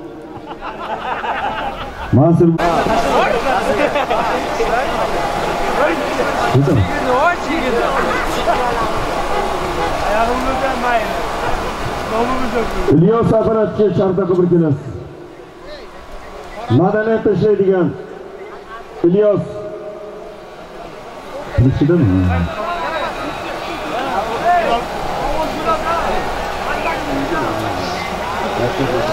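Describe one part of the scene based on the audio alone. A large outdoor crowd of men chatters and calls out.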